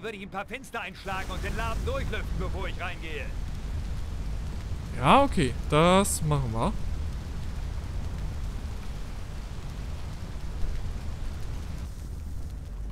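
A fire hose sprays a strong, steady rush of water.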